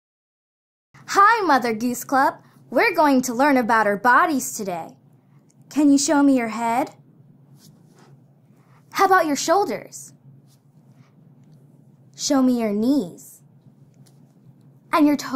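A young girl speaks cheerfully and close by.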